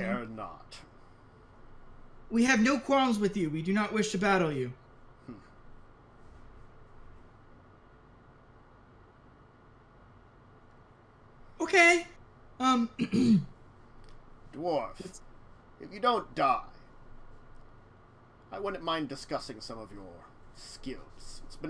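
Several men talk with animation over an online call.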